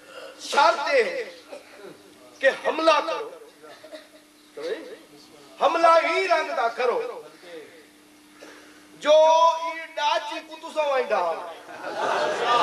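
A young man preaches with animation through a loudspeaker, his voice rising and falling in bursts.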